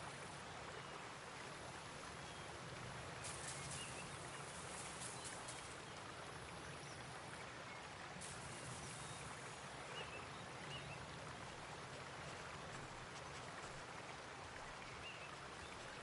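A shallow stream flows and babbles steadily outdoors.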